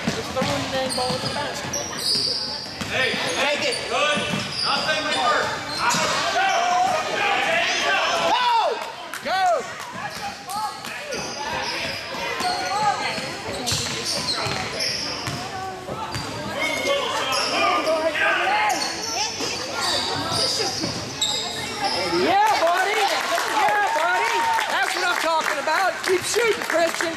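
Sneakers squeak sharply on a gym floor in an echoing hall.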